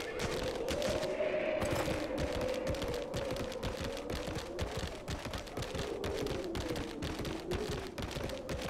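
Hooves thud rapidly as a mount gallops.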